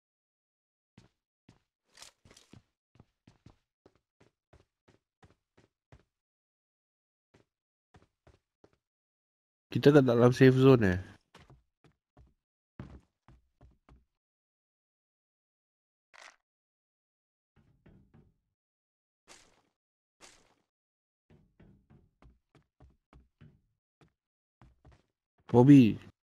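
Footsteps tap softly on hard ground.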